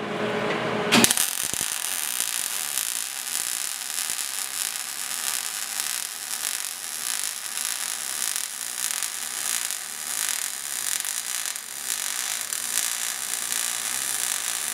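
A welding arc crackles and hisses steadily, close by.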